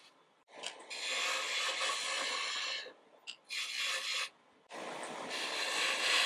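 A lathe gouge shaves wood from a spinning block in bursts of loud hissing scraping.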